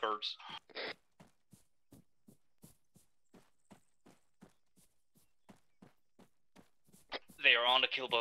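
Footsteps rustle through tall grass at a steady walking pace.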